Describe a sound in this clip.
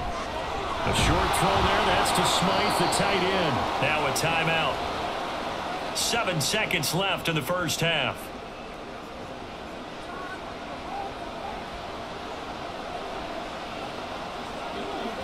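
A large stadium crowd roars steadily in the background.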